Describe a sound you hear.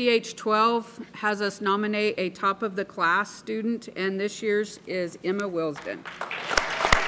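A middle-aged woman speaks calmly through a microphone in a large echoing hall.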